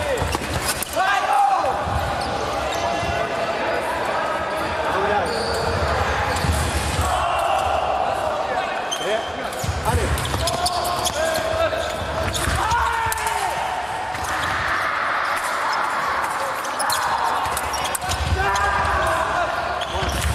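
A young man shouts loudly after a touch.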